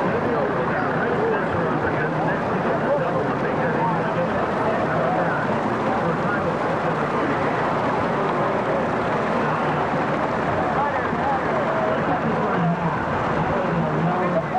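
Water splashes and churns as a boat is pushed along.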